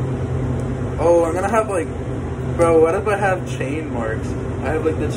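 A young man talks casually, close up.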